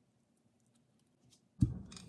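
Hands pat and press raw meat.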